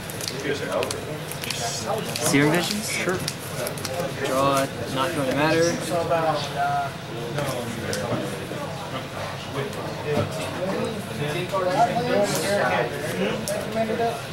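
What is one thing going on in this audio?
Playing cards are laid onto a soft mat with light taps.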